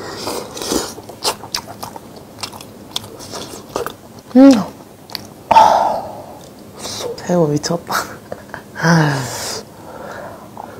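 A young woman chews and slurps food close to a microphone.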